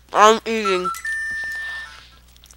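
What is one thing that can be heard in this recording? A steady electronic game tone sounds, then stops.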